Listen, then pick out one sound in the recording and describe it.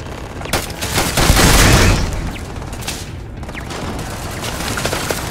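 Laser beams crackle and hum in bursts.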